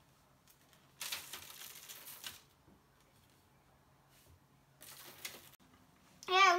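Crumbly dough rustles as it is sprinkled and pressed.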